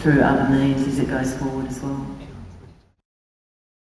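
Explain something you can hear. A middle-aged woman speaks calmly into a microphone, then her voice fades away.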